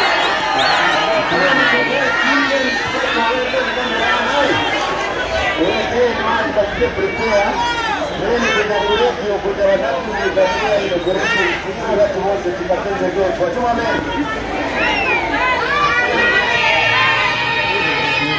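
A large crowd of men and women sings loudly together outdoors.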